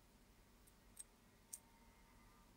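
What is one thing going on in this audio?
Small metal parts click together.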